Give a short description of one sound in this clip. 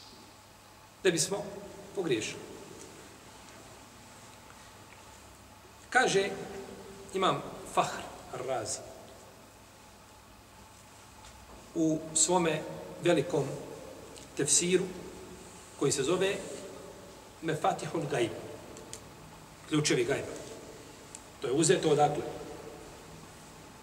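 A middle-aged man speaks calmly in short phrases, close to a microphone, with pauses between them.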